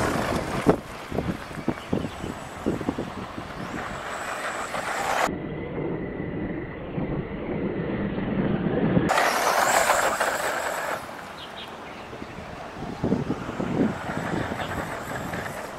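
Tyres of a toy car rush and bump over grass.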